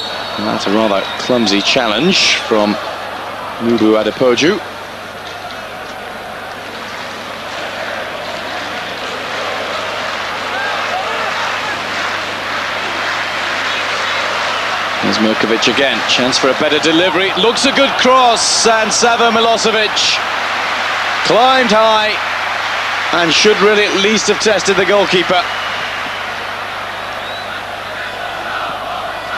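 A large stadium crowd roars steadily, swelling louder and then easing off.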